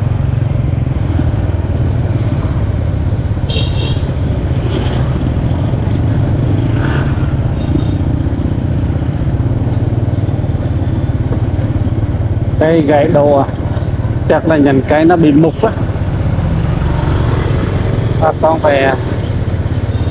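Other motorbikes pass by on the road.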